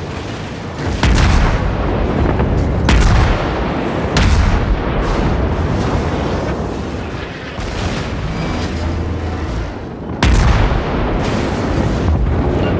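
Shells explode with deep rumbling bursts.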